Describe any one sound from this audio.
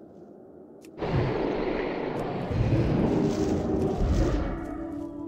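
A magic spell bursts with a loud whooshing roar.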